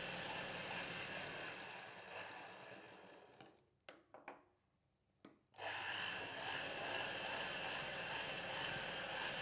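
A sewing machine runs and stitches steadily.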